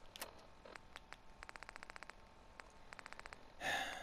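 A handheld device clicks rapidly as its dial turns.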